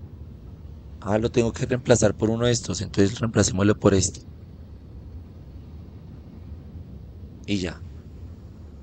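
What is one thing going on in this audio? A young man talks calmly and close into a microphone.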